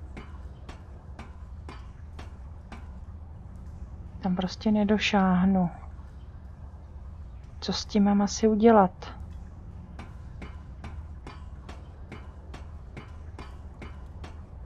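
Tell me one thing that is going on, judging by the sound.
Footsteps clank steadily on metal ladder rungs.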